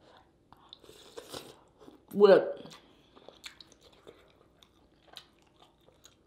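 A woman smacks and chews food loudly.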